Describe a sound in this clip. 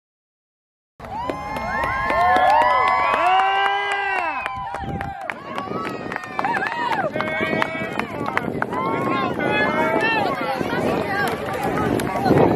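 Young boys shout and cheer as they run.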